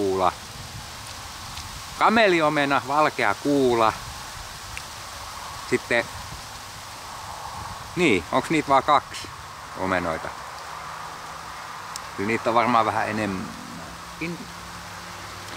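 A middle-aged man talks with animation close by, in short bursts with pauses.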